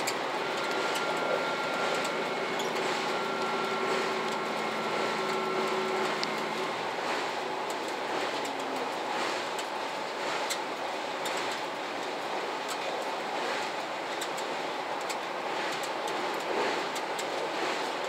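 A diesel express train rumbles at speed over a steel bridge, heard from inside the cab.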